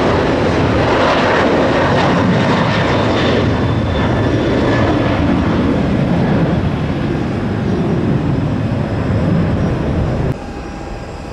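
A jet engine roars loudly as an airplane takes off.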